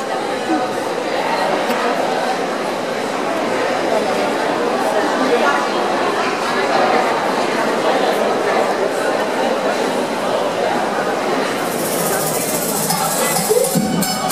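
Music plays over loudspeakers.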